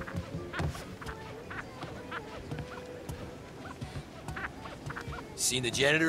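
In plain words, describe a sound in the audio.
A knuckle raps on a window pane.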